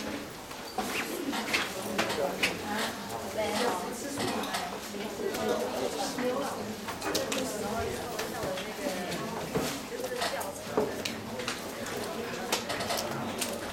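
Several men and women chatter at a distance.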